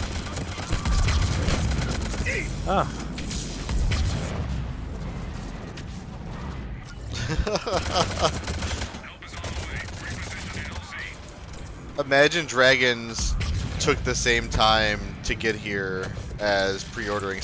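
Gunshots crack and boom in quick bursts.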